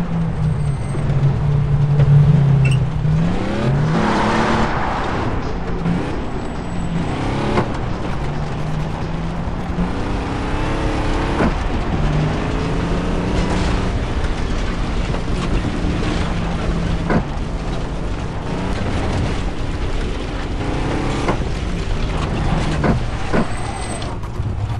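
Tyres rumble over a bumpy dirt road.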